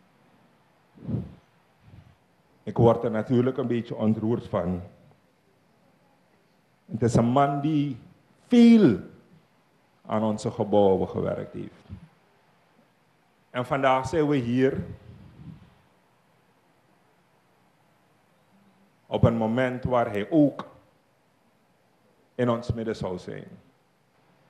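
A man speaks calmly into a microphone, heard over a loudspeaker in phrases with pauses between them.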